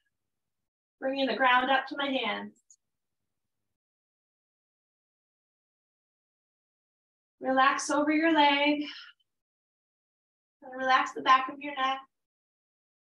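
A woman speaks calmly through a microphone, in short phrases with long pauses.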